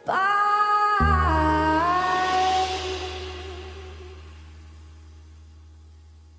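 A piano plays a held chord that slowly fades.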